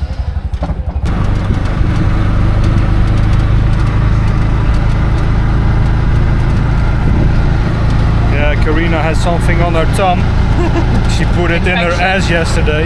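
An auto rickshaw engine rumbles steadily while driving.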